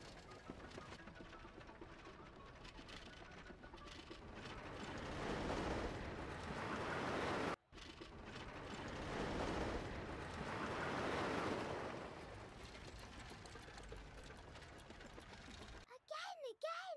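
A roller coaster rattles along its track with a rushing roar.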